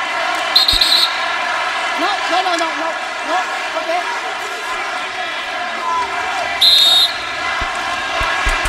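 A crowd murmurs steadily in a large echoing arena.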